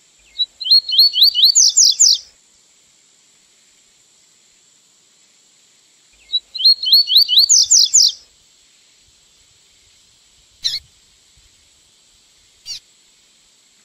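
A small bird sings a quick, bright trilling phrase, twice, with short calls after.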